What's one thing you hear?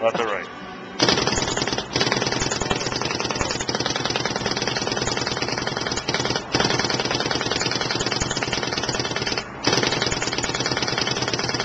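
A paintball marker fires rapidly in long, fast bursts.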